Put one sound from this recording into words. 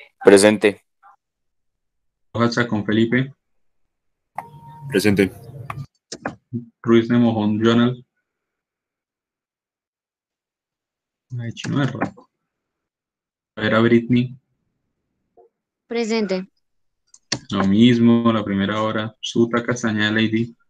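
A young man speaks in short bursts over an online call.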